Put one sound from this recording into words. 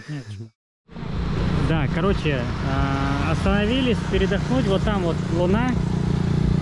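A motorbike drives past on a road.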